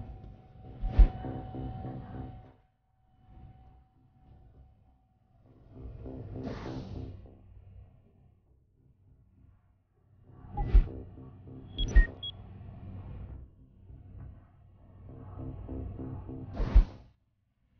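Short menu clicks sound from a game.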